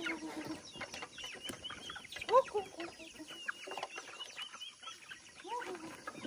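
Chickens peck grain off a metal sheet.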